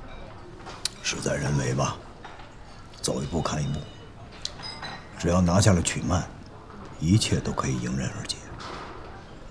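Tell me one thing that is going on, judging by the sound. A middle-aged man speaks calmly and quietly nearby.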